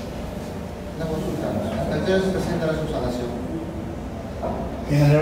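A man speaks calmly nearby in a room with slight echo.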